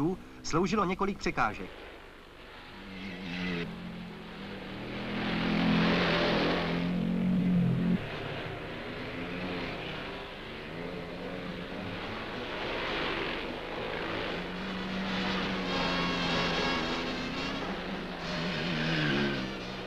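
Motorcycle engines roar and rev over rough ground.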